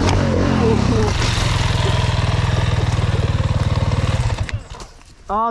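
A motorcycle engine idles steadily.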